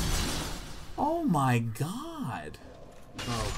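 A man shouts in dismay.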